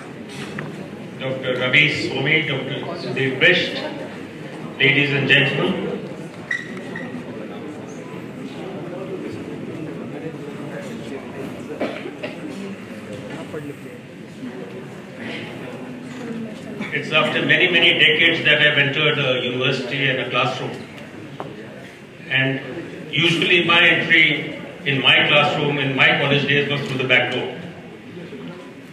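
A middle-aged man speaks calmly through a microphone and loudspeakers in a reverberant hall.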